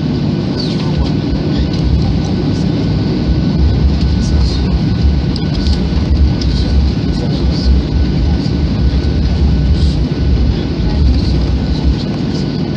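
Aircraft wheels rumble and thump over the runway.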